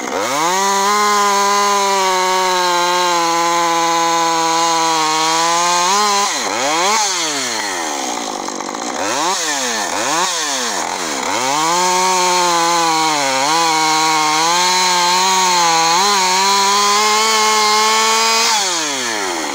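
A chainsaw engine roars as it cuts through a log, bogging down and revving up again.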